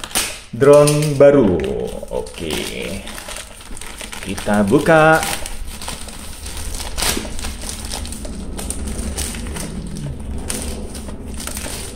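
A plastic mailing bag crinkles and rustles as hands tear it open.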